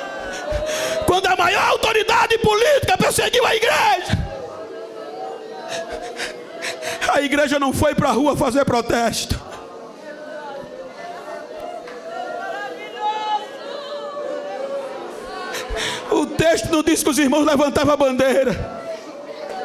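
A man preaches loudly and with fervour into a microphone.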